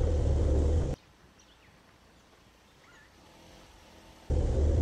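A van engine hums softly as the van rolls slowly closer.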